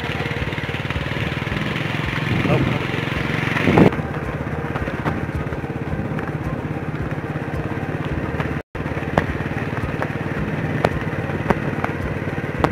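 A motorbike engine putters steadily nearby.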